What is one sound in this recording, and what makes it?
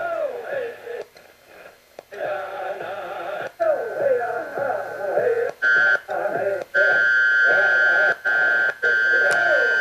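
Static crackles and cuts out as a radio is tuned.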